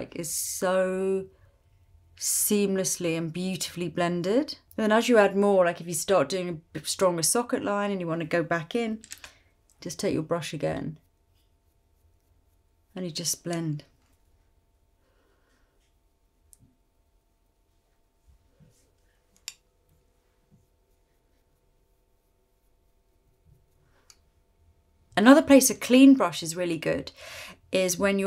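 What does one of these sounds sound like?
A young woman talks calmly and warmly close to a microphone.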